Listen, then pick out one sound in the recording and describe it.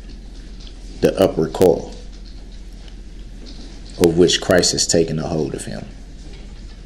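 A man speaks in short bursts with pauses.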